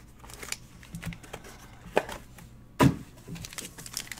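A cardboard box lid thuds onto a table.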